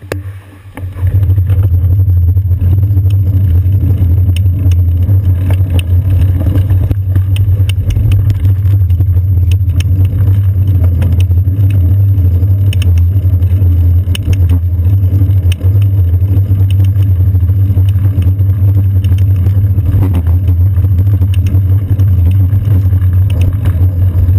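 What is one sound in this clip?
Wind rumbles loudly and steadily against a microphone while riding outdoors.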